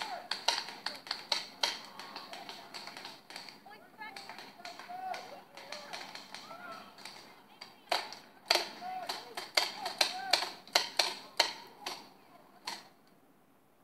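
Paintball markers fire in bursts of sharp pops outdoors.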